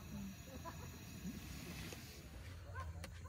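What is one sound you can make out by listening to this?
A gas stove burner hisses softly.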